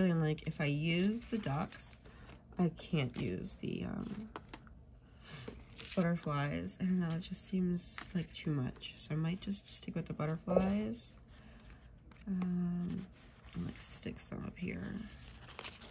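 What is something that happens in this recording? Paper sheets rustle softly as they are handled.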